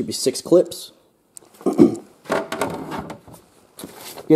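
A hard plastic cover knocks and rattles as it is handled.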